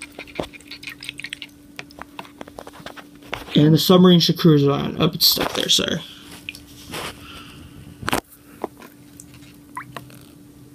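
Water sloshes and splashes softly in a small bowl.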